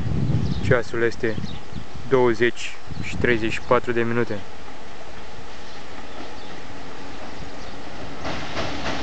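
A wide river flows steadily past outdoors.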